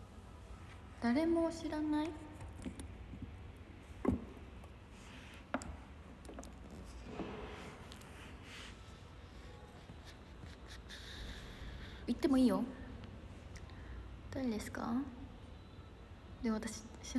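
A young woman speaks softly and casually close to a phone microphone, with long pauses.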